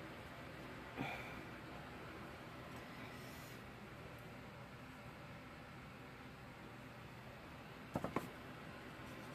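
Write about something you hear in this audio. A wooden stick knocks lightly against a table.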